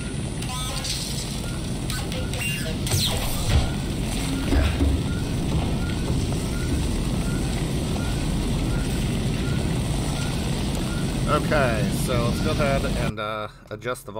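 A fire roars and crackles loudly.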